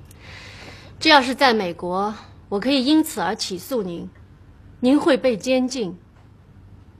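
A woman speaks with animation, her voice high and insistent.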